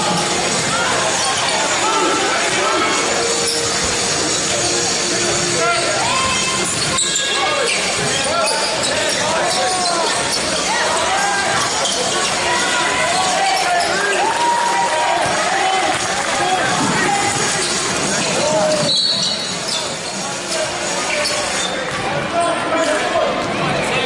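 Sneakers squeak sharply on a hard court in a large echoing hall.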